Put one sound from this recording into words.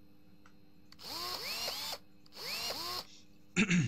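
An impact wrench whirs in short bursts.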